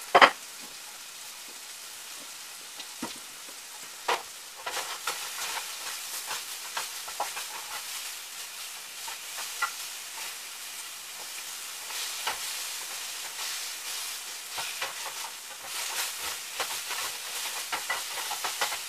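Dishes and utensils clink and clatter on a counter.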